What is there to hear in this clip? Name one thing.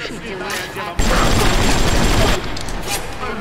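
A gun fires a loud, rapid burst of shots.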